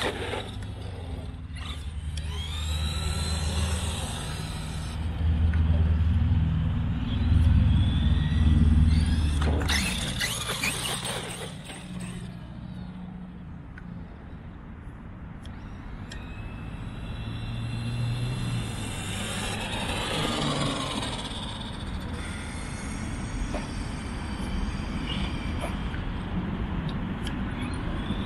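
An electric motor of a small remote-control car whines, rising and falling in pitch as it speeds up and slows down.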